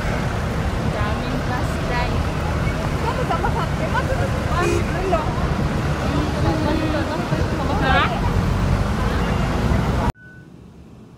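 Women chat nearby on a noisy street.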